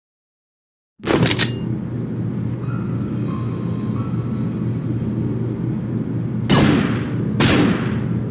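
A low, steady hum drones indoors.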